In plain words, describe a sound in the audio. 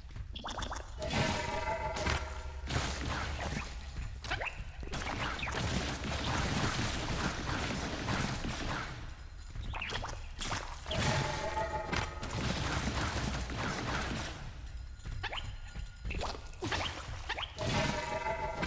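Creatures burst and splatter as they are hit.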